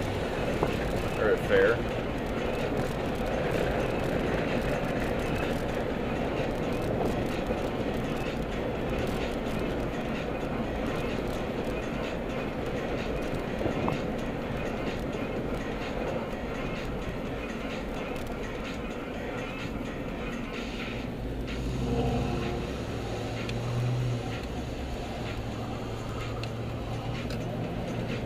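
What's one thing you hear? Tyres roar on the road.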